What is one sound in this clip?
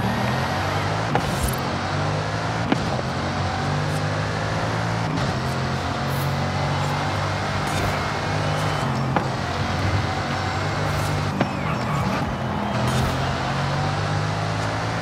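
A powerful car engine roars and shifts through gears at high speed.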